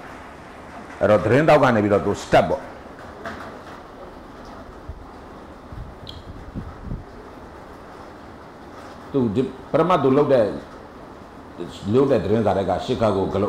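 A middle-aged man reads aloud through a handheld microphone, in short bursts with pauses.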